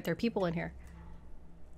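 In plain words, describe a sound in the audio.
A young woman speaks briefly into a microphone with animation.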